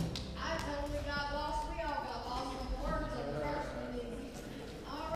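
A group of people sings together in a large echoing hall.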